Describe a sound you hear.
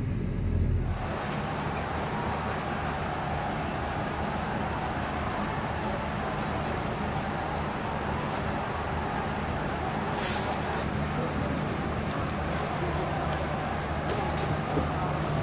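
A bus engine idles with a low steady hum.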